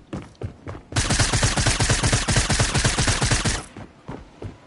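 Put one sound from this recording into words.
A weapon fires a loud, steady burst.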